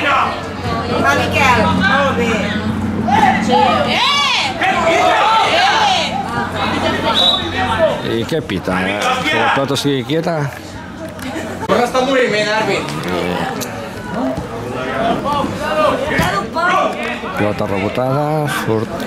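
Several men talk and call out with animation close by, outdoors.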